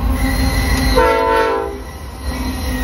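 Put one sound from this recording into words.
A train horn blasts briefly.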